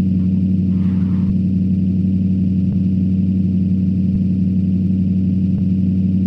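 An engine drones low and steady as an off-road vehicle climbs slowly.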